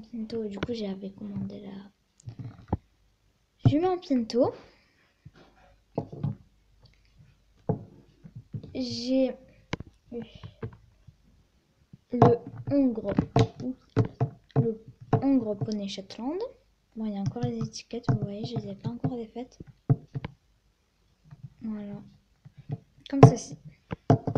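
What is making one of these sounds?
A plastic toy knocks and taps on a glass surface.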